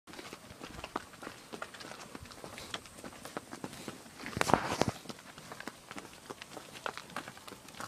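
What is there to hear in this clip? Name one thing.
Horse hooves clop on a gravel track.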